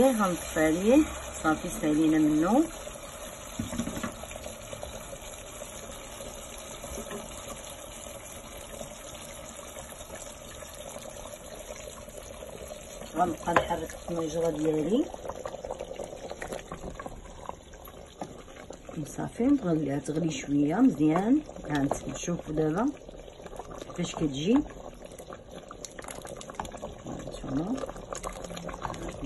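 Liquid bubbles and simmers in a pot.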